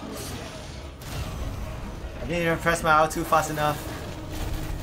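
A fiery explosion bursts with a loud boom.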